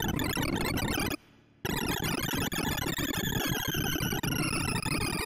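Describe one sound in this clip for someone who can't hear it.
Rapid electronic beeps chatter in a dense, busy stream, pausing briefly before starting again.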